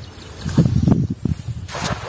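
A fishing net swishes through the air.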